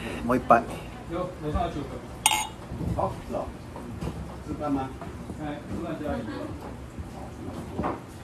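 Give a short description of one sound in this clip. Beer pours from a bottle into a glass and fizzes.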